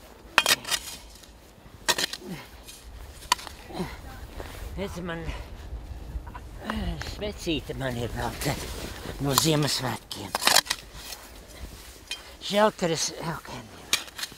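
A shovel scrapes and chops into packed snow.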